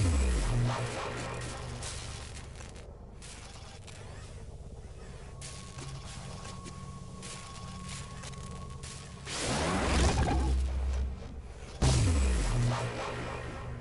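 Game menu sounds whoosh and chime as menus open and close.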